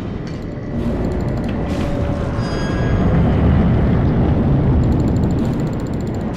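A heavy creature roars and thuds on the ground.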